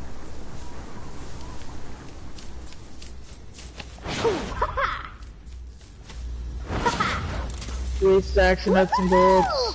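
Quick footsteps patter across a hard roof.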